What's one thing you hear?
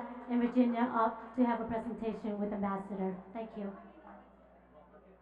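A woman speaks with animation over a loudspeaker.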